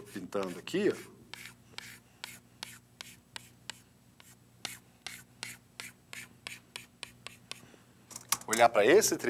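Chalk taps and scratches rapidly on a chalkboard.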